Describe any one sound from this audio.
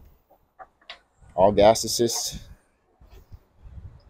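A hatch lid latch clicks open.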